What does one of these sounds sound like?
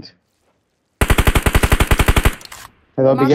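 An automatic rifle fires a fast, rattling burst.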